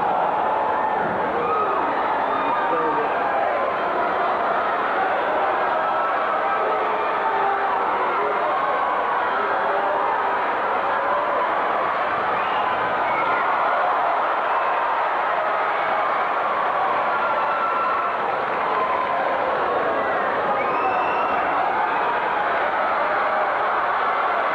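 A large crowd in an arena chatters and shouts.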